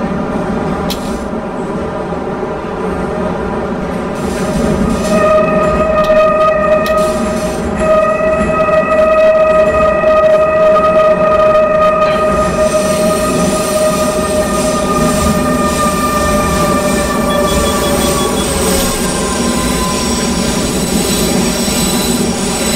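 A train rumbles steadily along the rails through a tunnel.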